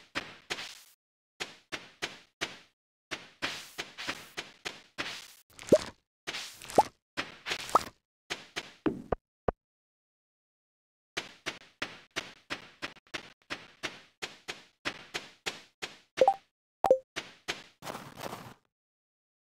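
Quick, light footsteps patter in a steady rhythm.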